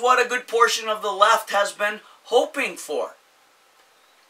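A middle-aged man speaks with animation close to the microphone.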